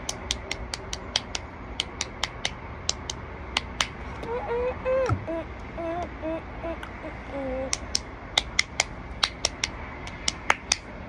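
A boy claps and slaps his hands together rapidly.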